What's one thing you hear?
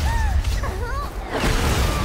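A young woman gasps in alarm.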